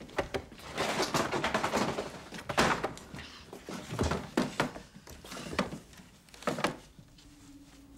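A young girl speaks quietly nearby.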